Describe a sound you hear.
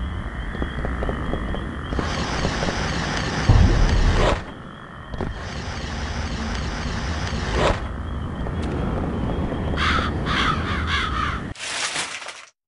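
Video game music plays with a steady beat.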